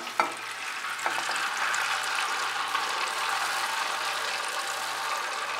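Liquid fat pours and trickles steadily into a glass dish.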